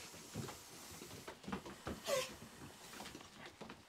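Puppies' claws patter and scratch on a tabletop.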